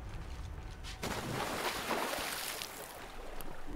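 Water splashes as a figure drops into it.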